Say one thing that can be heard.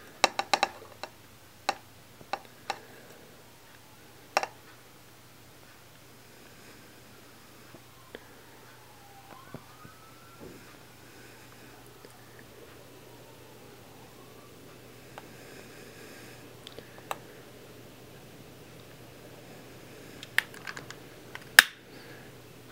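A gas lighter clicks several times.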